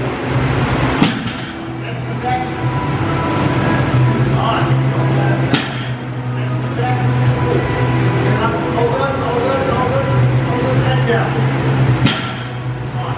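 A loaded barbell thuds heavily onto the floor several times.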